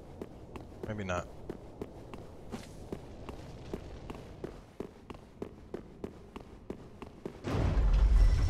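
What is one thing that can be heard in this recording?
Armoured footsteps run quickly across a stone floor.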